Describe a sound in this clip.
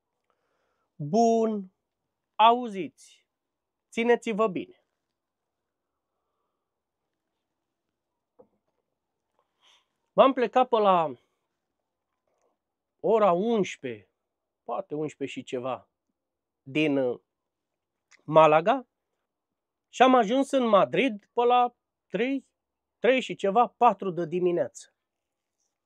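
A middle-aged man talks calmly and close by, in short bursts with pauses.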